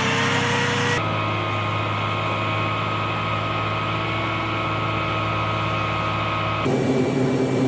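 De-icing fluid sprays and hisses against an aircraft.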